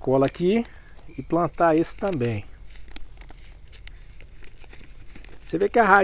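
Scissors snip through a plastic bag.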